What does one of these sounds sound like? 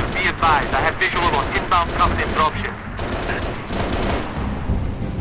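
Cannon shots fire in rapid bursts.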